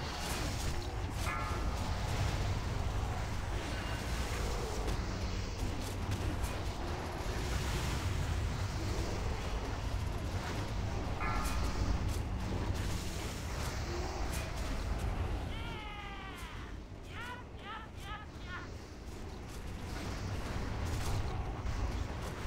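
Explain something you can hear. Spell effects whoosh and crackle during a game battle.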